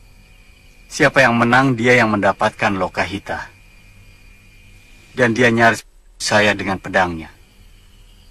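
A young man speaks in a low, tense voice, close by.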